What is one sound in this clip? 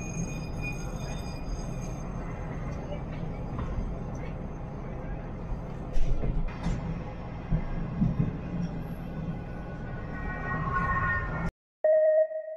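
A train rumbles and rattles along the tracks.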